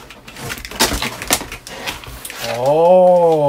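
Plastic packaging rustles and crinkles as it is handled.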